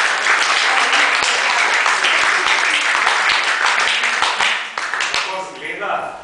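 A small group applauds, clapping close by.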